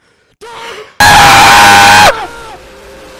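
A blade strikes with a loud, harsh, ringing crash.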